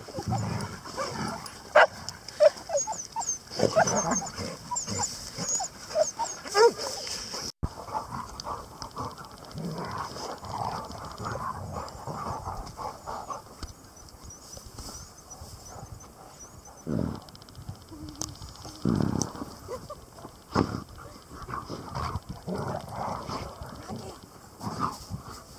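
Dogs sniff noisily close by.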